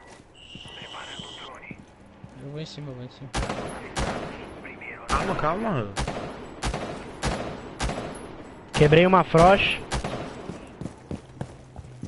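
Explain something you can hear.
A rifle fires single, sharp shots.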